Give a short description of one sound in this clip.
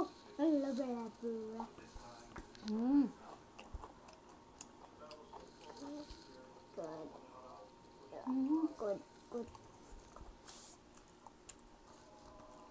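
A woman chews and smacks her lips while eating.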